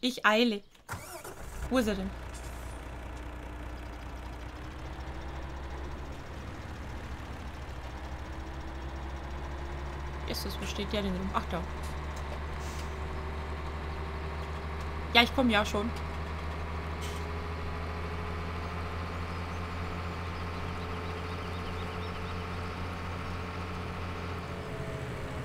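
A truck engine drones steadily as it drives along.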